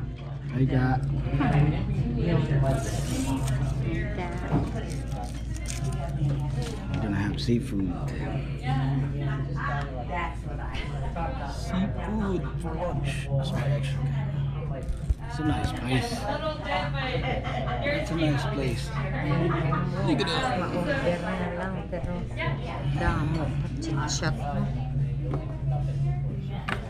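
A woman talks casually nearby.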